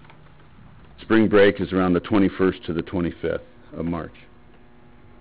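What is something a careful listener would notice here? A man speaks briefly through a microphone in a quiet room.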